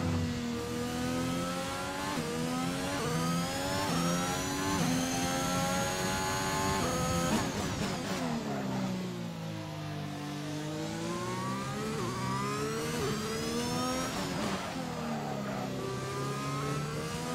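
A racing car engine screams at high revs, climbing through the gears.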